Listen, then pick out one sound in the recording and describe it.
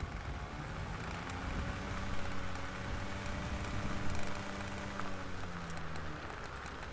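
Tyres roll over a dirt road.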